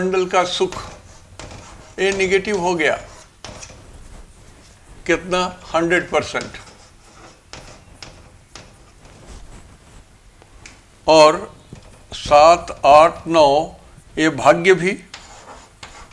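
An elderly man speaks calmly and clearly into a close microphone, in bursts with pauses.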